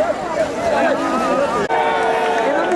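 Water splashes as people wade and play.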